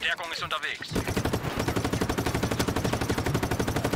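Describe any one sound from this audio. Gunfire bursts in rapid, even shots.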